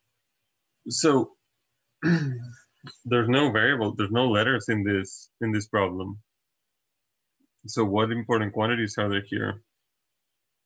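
A young man speaks calmly and closely into a microphone, then falls silent.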